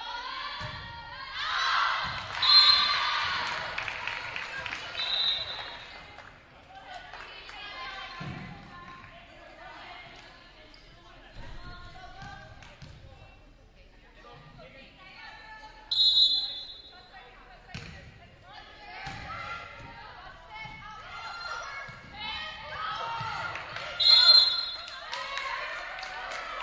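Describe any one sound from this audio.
Young women on a volleyball team shout and call out to each other in an echoing gym.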